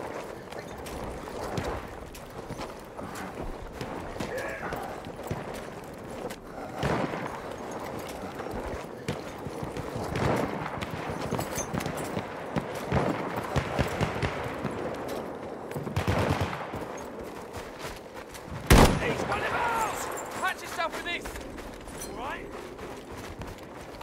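Distant explosions and gunfire rumble and crack.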